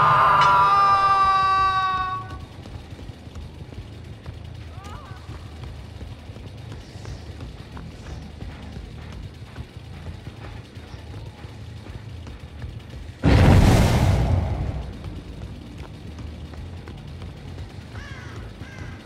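Footsteps walk steadily on a hard floor in an echoing space.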